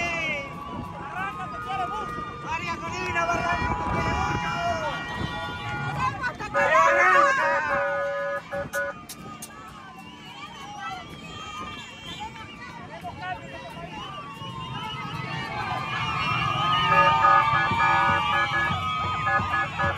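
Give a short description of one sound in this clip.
A crowd cheers and shouts excitedly nearby outdoors.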